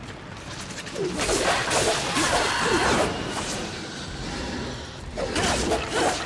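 Blades swoosh and strike in a fast fight.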